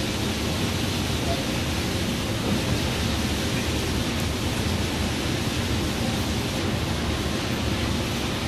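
A bus engine drones steadily while driving on a highway.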